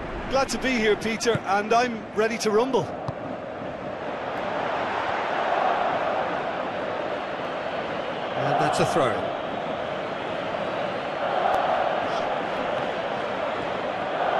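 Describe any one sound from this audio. A stadium crowd roars steadily, swelling now and then.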